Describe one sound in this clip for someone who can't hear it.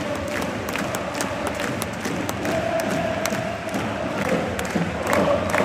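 Many fans clap and cheer throughout.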